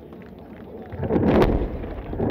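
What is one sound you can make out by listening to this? A distant explosion booms and rumbles.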